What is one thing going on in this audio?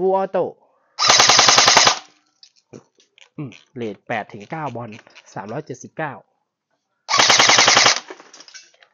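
An airsoft rifle fires a rapid burst of shots.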